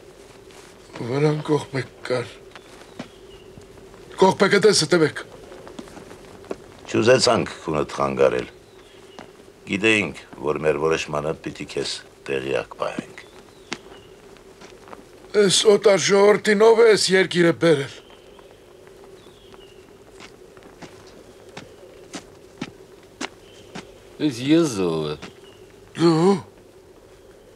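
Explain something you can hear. Several men talk outdoors in turns, some speaking up loudly.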